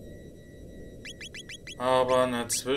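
Short electronic blips sound quickly one after another.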